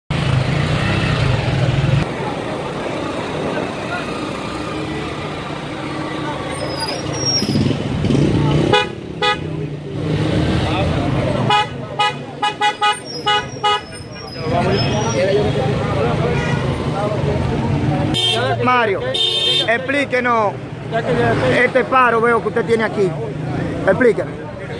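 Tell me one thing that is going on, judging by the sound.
A crowd of people murmurs and talks outdoors.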